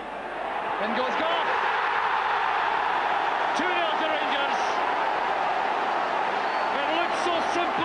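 A large stadium crowd roars loudly in cheers.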